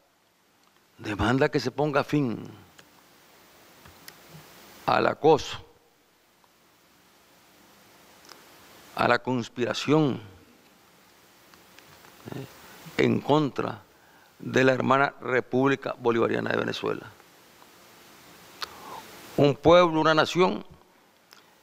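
A middle-aged man speaks slowly and deliberately into a microphone, with long pauses between phrases.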